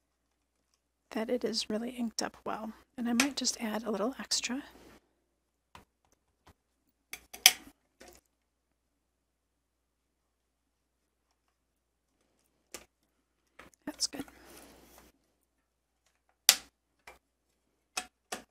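A plastic lid clicks and snaps shut.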